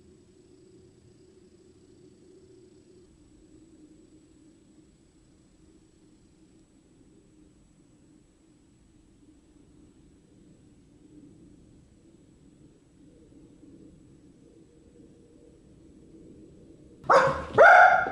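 A small dog breathes softly in its sleep.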